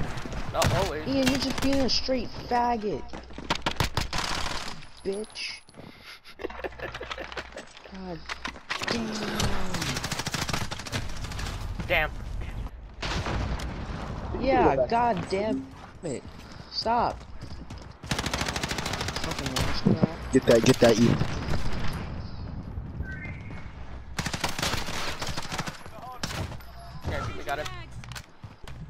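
Guns fire in sharp, rapid bursts.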